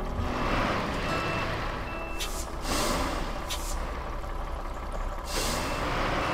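A heavy truck engine rumbles at low speed.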